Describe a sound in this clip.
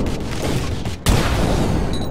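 A loud explosion booms and blasts debris.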